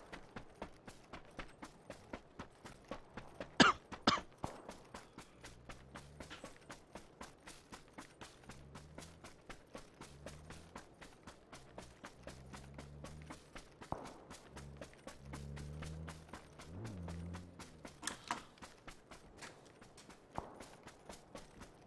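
Footsteps rustle quickly through dry grass.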